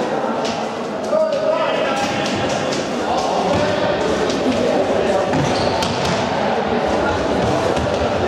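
Young men shout to one another across an echoing hall.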